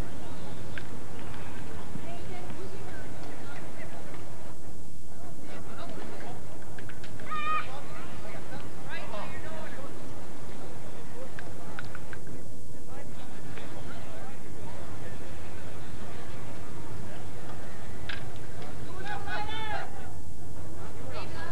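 Children and adults shout and call out across an open field outdoors.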